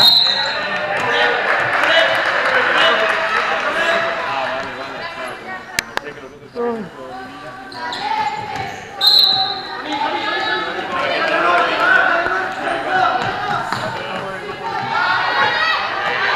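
Sneakers squeak sharply on a wooden floor.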